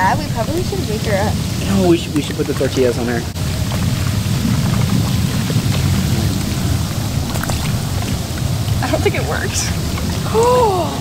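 Bubbling water churns and rumbles steadily.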